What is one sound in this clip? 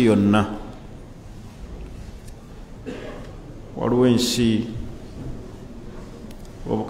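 A man speaks slowly and calmly into a microphone, with long pauses.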